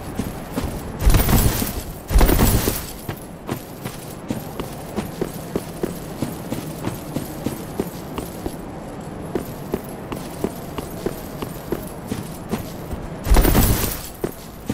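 Armoured footsteps crunch quickly over rough ground.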